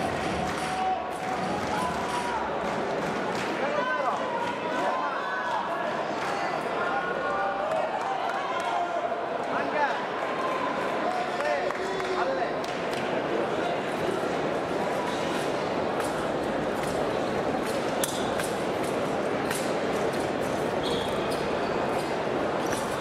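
A large crowd murmurs in a big echoing hall.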